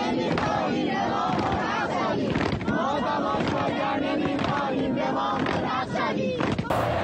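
A dense crowd of young people shouts loudly close by.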